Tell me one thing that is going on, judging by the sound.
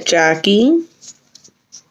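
A young woman speaks briefly and animatedly close by.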